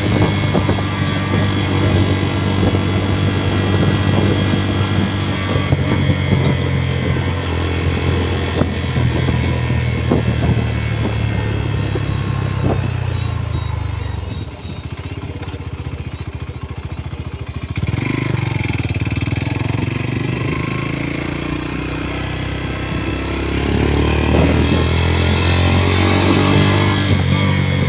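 A motorcycle engine hums steadily up close, slowing and dropping to an idle before revving up again.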